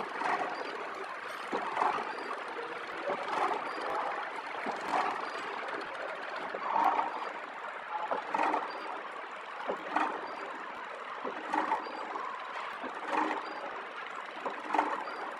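A flow wrap packaging machine runs, its sealing head clacking in a steady rhythm.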